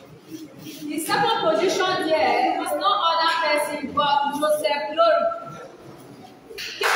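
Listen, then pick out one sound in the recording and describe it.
A woman speaks aloud nearby.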